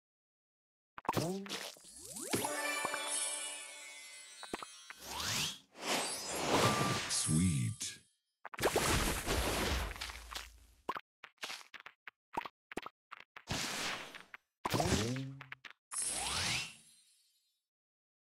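Bright game chimes and jingles ring out in quick bursts.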